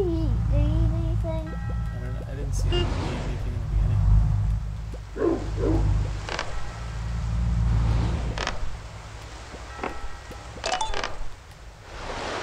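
Short game blips sound as a small character hops forward.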